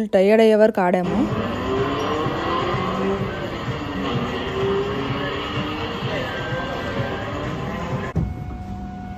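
Music plays from a carousel ride.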